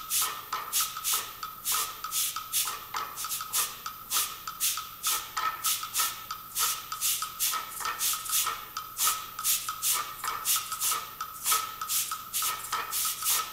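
A choir of young women sings together.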